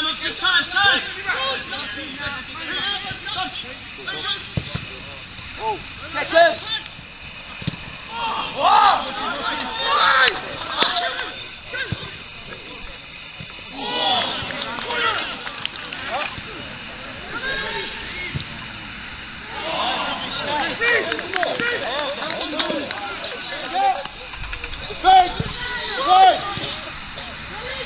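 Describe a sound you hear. Men shout and call out across an outdoor pitch.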